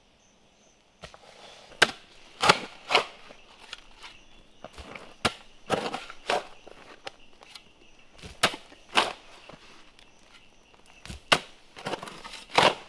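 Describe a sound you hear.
Loose earth and leaves scrape and rustle as soil is dug.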